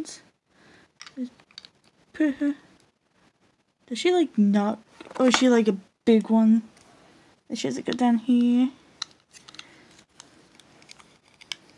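A small plastic box clicks and rattles as it is handled.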